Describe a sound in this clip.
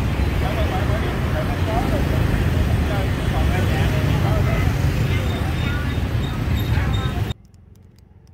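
People chatter in a busy outdoor crowd.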